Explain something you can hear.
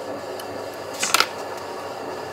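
Metal tongs clank sharply against a steel bar in a vise.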